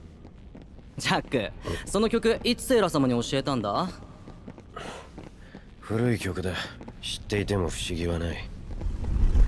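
A man speaks in a deep, tense voice.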